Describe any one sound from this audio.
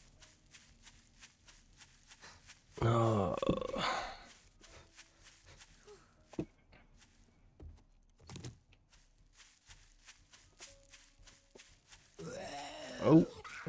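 Footsteps crunch steadily through dry grass.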